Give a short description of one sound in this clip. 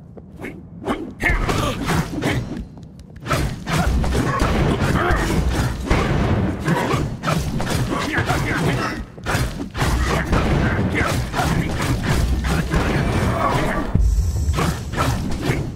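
Swords clash and slash loudly in a fast, busy fight.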